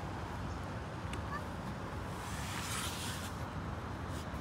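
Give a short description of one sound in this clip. A young girl slides down a plastic slide with a soft rustle.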